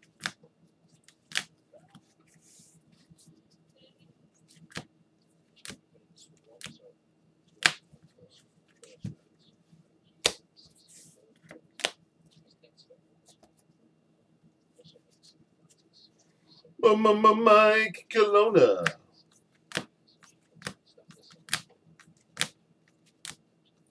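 Plastic card cases click and tap as they are handled.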